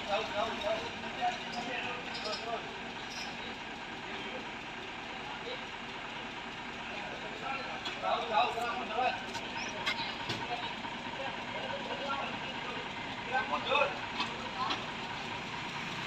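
A man calls out directions from nearby.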